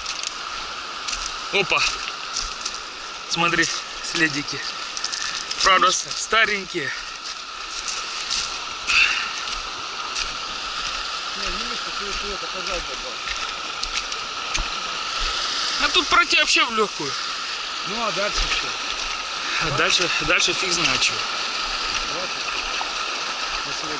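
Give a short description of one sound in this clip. A river rushes and gurgles over stones nearby.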